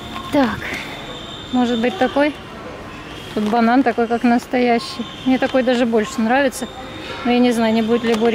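A plastic basket of toy fruit rattles as it is picked up.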